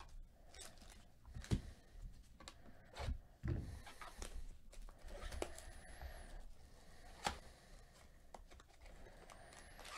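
Plastic wrappers crinkle and rustle in handling.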